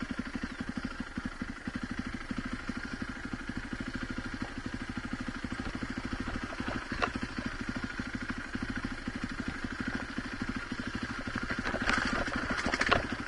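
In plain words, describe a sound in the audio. A dirt bike engine chugs steadily close by.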